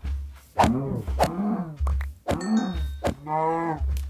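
A cow lows in pain as it is struck.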